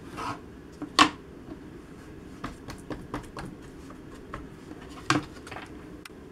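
A plastic paint palette clatters as it slides across a table.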